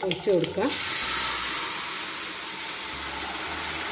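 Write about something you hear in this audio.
Liquid pours into a hot pan and sizzles loudly.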